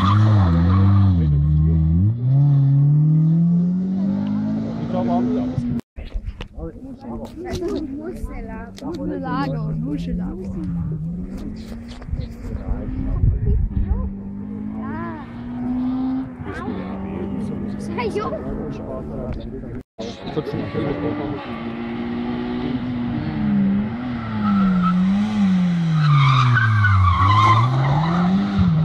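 A car engine revs loudly, rising and falling in pitch as the car races past.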